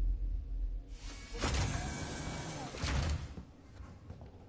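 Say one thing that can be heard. Steam hisses loudly.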